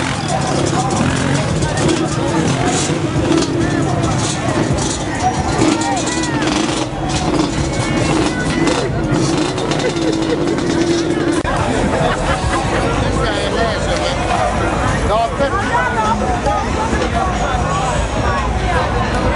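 Engines of quad bikes rumble and rev nearby.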